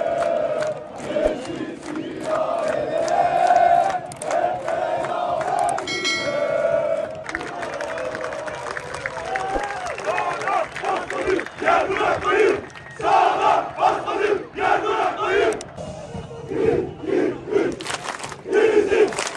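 A large crowd of fans chants loudly in unison in an open stadium.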